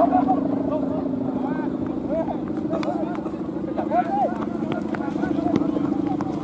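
A kite's hummer drones steadily overhead in the wind.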